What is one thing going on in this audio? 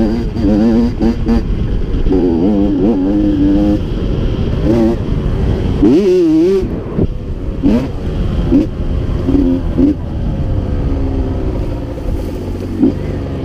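Tyres rumble over a bumpy dirt track.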